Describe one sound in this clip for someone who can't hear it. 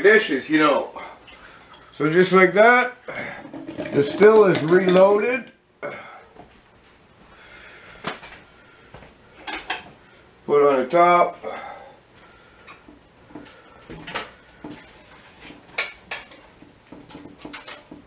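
Metal pots and lids clank and knock.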